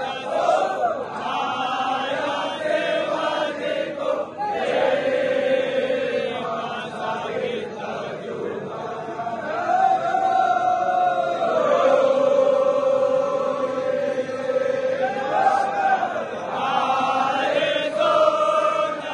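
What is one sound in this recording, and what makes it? A large crowd chants and sings loudly together.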